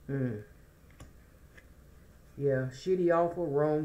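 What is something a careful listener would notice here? A playing card is set down softly on other cards.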